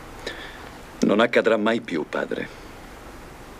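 A young man speaks firmly, close by.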